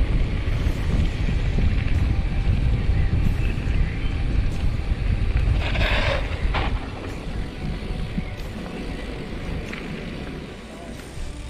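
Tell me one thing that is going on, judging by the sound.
Bicycle tyres crunch on a dirt trail.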